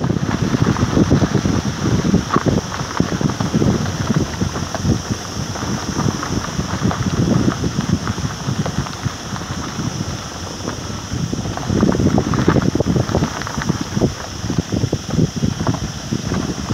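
Wind gusts buffet the microphone outdoors.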